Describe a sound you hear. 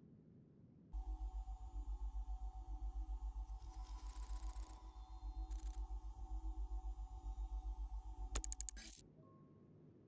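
A low pulsing electronic hum drones steadily.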